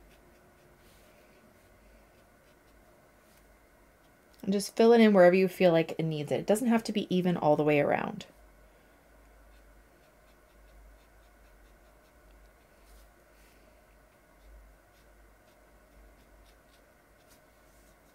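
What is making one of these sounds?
A paintbrush brushes softly across paper.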